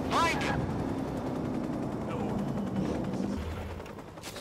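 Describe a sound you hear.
A motorcycle engine rumbles at idle and then cuts out.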